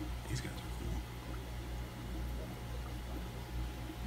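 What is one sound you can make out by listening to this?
Air bubbles gurgle at the water's surface.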